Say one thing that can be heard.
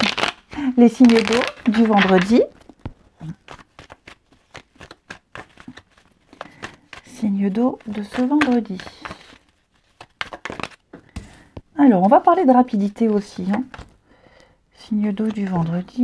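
Playing cards riffle and rustle in hands.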